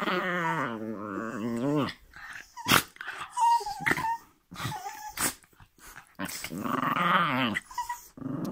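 A dog howls loudly close by.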